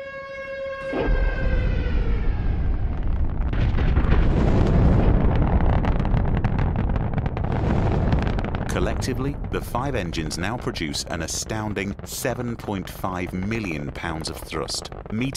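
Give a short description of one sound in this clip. A rocket engine roars with a deep, thundering rumble.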